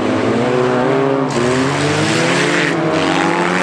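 Tyres spin and skid on loose dirt.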